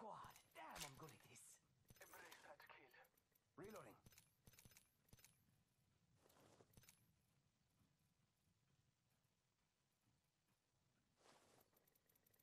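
Short electronic clicks sound as game menu items are selected.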